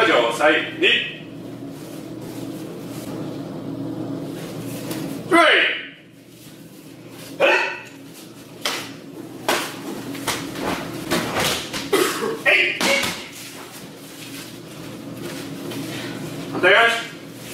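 Bare feet shuffle and slap on mats.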